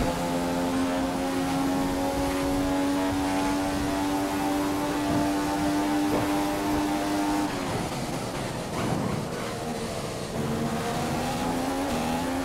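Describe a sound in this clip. A racing car engine whines at high revs, then drops in pitch while braking and climbs again.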